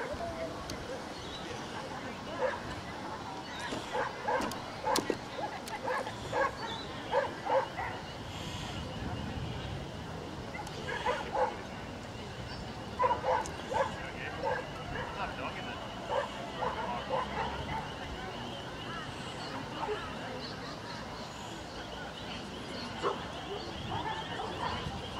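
Men and women chat in a crowd outdoors.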